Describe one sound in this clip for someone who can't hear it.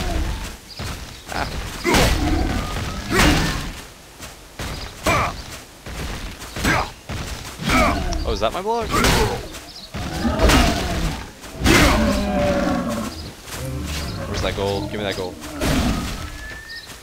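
Sword blows strike a monster with sharp thuds.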